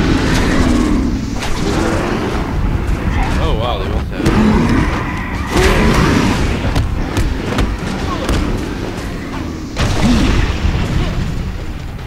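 Punches and kicks land with heavy thuds.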